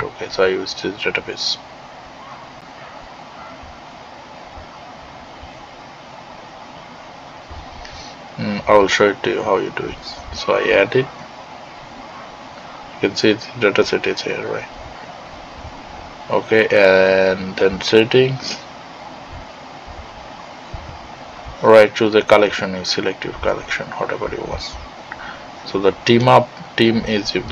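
A man talks calmly and explains into a close microphone.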